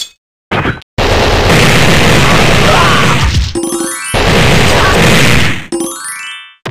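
A machine gun fires a long, rapid burst.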